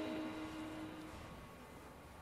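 A saxophone plays a note that fades away.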